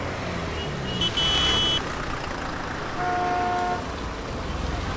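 A horn honks on a street.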